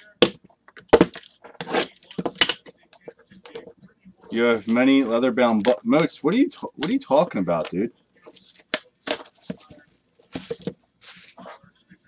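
Cellophane wrap crinkles and tears as a box is opened.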